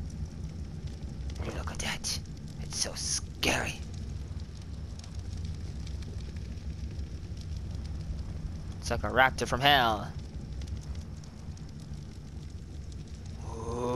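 Large fires roar and crackle steadily.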